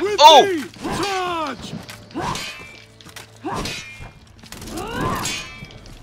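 A sword swings through the air with a whoosh.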